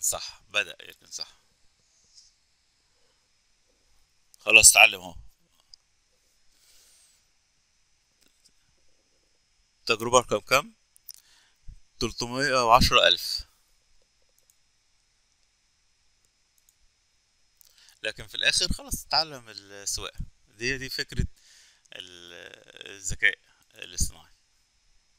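A man speaks calmly into a microphone, close by, in bursts with pauses.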